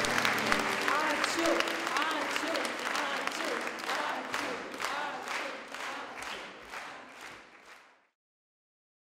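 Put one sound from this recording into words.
A large crowd claps rhythmically in an echoing hall, then fades away.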